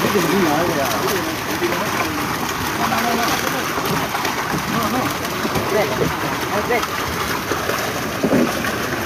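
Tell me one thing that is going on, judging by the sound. Several men talk and call out close by, outdoors.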